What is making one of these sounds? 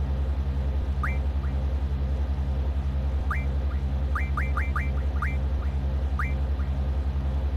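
Short high electronic blips sound as a menu cursor moves.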